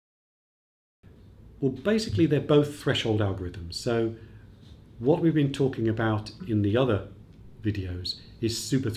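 An older man speaks calmly and clearly, close by.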